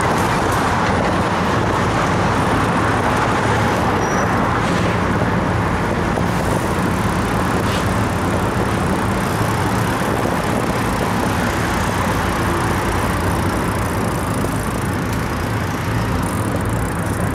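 Wind rushes loudly past outdoors.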